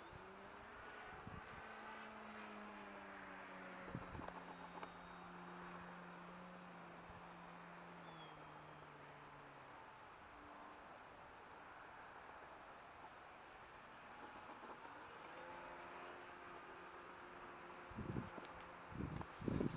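A small propeller plane drones high overhead, its engine pitch slowly falling and rising again.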